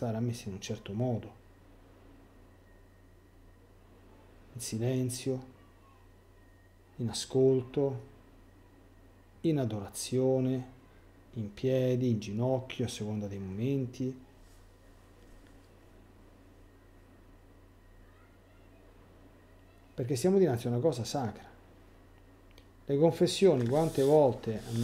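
A middle-aged man speaks thoughtfully into a nearby microphone, pausing often.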